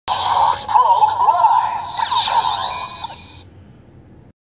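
A toy belt plays loud electronic sound effects and chimes.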